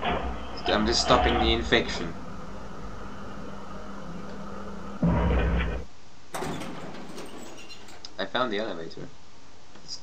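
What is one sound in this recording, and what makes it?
A young man speaks through a headset microphone.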